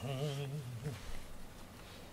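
A brush rubs through a cat's fur.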